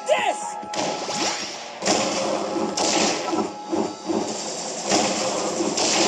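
Video game blasts and whooshes roar in repeated bursts.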